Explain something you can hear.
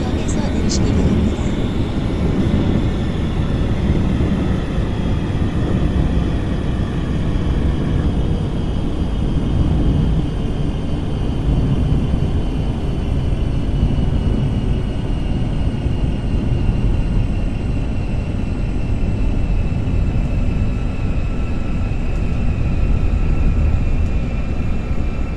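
An electric motor whines, its pitch slowly falling.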